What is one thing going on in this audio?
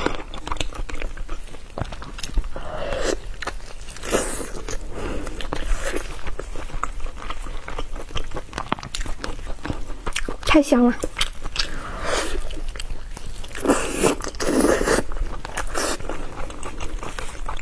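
Sauce-covered meat squelches wetly in gloved hands.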